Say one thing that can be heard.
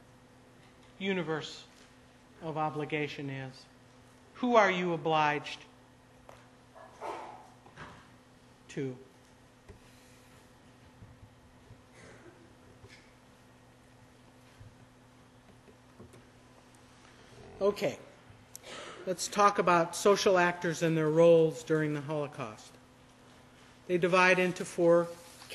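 A man speaks calmly through a microphone, with long pauses, in a room with an echo.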